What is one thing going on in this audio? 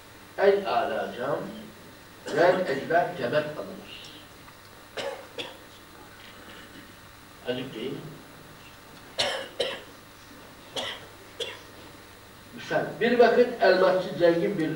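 An elderly man reads aloud expressively into a microphone, with pauses between lines.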